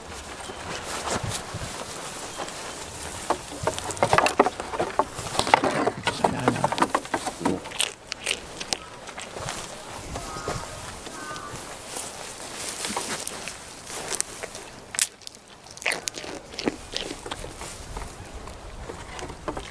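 Goat hooves clatter and knock on a wooden walkway.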